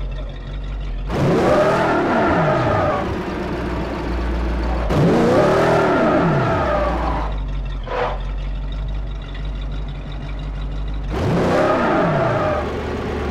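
A car engine idles and revs hard in loud rising and falling bursts.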